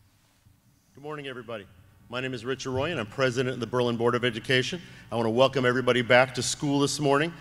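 A second man speaks steadily into a microphone in an echoing hall.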